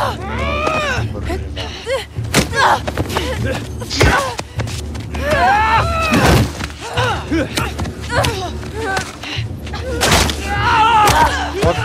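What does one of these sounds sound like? Blows land with heavy thuds during a fight.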